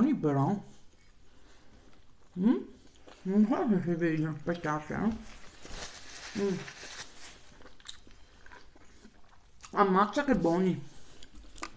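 A woman chews food with soft wet sounds.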